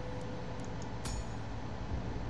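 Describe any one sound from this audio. A game menu gives a short click.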